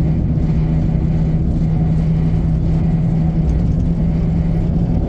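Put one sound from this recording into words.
Train wheels rumble along the rails.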